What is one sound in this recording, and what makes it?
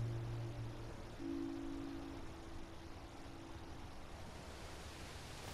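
Waves wash against rocks nearby.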